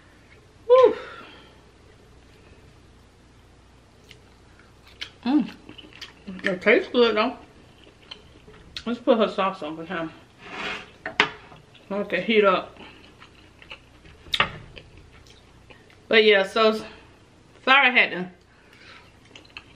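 A woman chews and smacks her lips close to a microphone.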